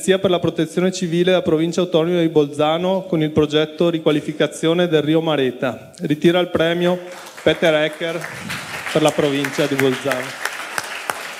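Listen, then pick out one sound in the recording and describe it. A man speaks steadily through a microphone in a hall.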